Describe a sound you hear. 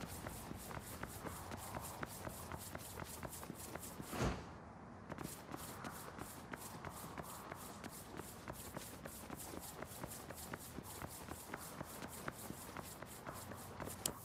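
Quick footsteps run across a hard surface.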